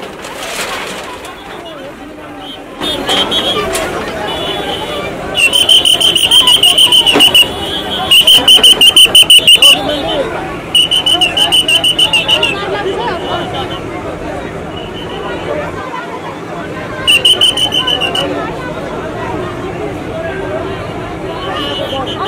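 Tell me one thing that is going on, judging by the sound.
A crowd of men and women chatters loudly outdoors.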